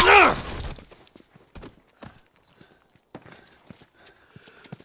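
Footsteps scuff across a hard floor.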